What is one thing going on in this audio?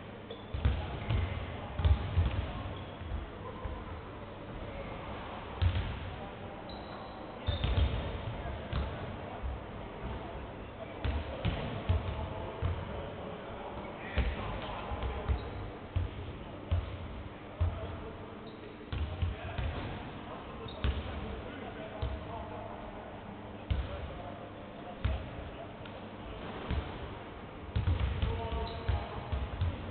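A basketball bounces repeatedly on a wooden court.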